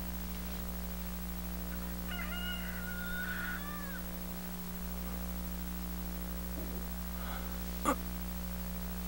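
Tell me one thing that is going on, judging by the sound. A man breathes softly in his sleep.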